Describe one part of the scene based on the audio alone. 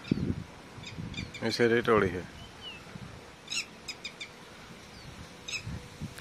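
A small bird chirps nearby.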